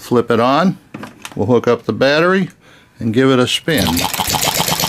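A small engine sputters, coughing as it is cranked by hand.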